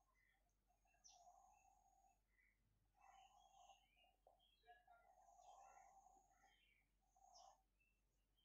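A pencil scratches softly on paper as a circle is drawn.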